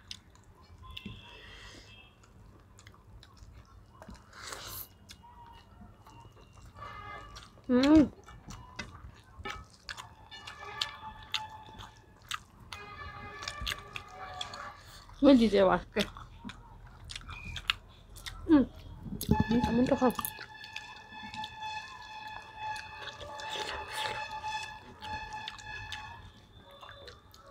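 Two young women chew and smack their lips close by.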